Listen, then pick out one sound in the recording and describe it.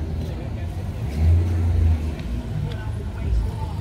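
A car drives slowly past on a street.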